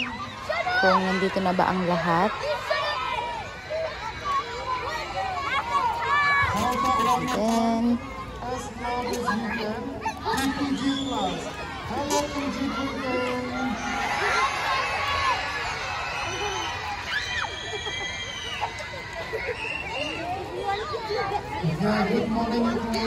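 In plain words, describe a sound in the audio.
A man speaks loudly to a crowd of children.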